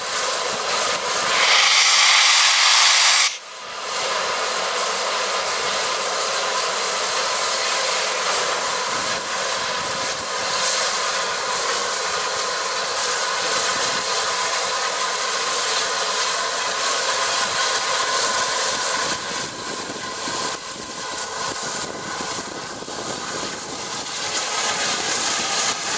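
A steam locomotive chuffs and rumbles slowly past, close by.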